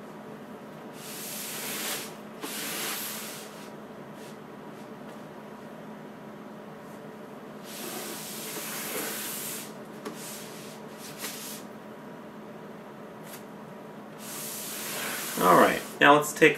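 Plastic sheeting rustles and crinkles as it is handled.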